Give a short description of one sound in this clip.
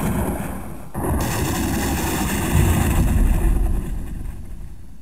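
A large beast roars deeply.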